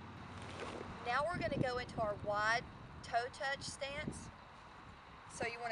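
A woman speaks calmly and clearly, close to a microphone, outdoors.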